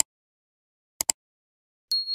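A mouse clicks once.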